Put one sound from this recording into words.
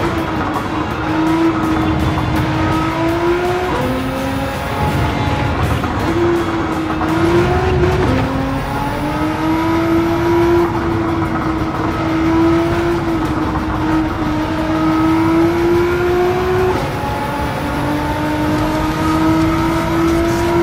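Tyres rumble over the track.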